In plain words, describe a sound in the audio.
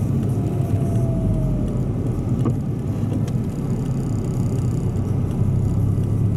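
A car engine rumbles steadily from inside the car as it drives.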